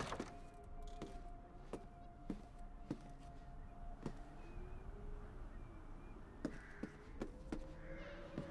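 Slow footsteps creak across a wooden floor.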